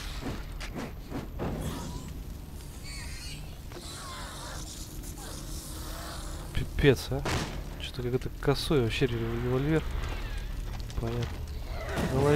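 A small flame crackles and hisses.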